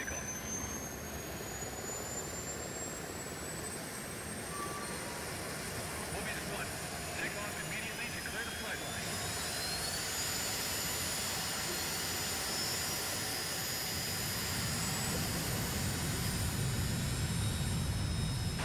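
A jet engine roars steadily and grows louder.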